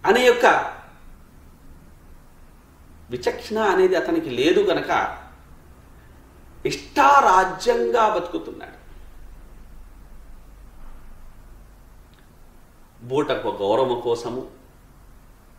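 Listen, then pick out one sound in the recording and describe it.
A man speaks calmly in short phrases, close to a microphone, with pauses between them.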